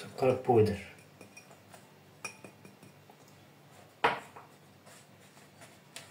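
A spatula scrapes and taps against a ceramic bowl.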